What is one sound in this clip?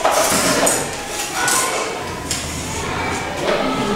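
Plastic cutlery clatters on a table.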